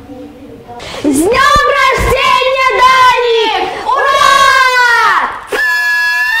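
Children sing loudly together.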